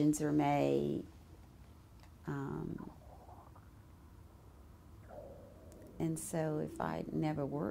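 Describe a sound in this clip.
An elderly woman speaks calmly and close to a microphone, with pauses.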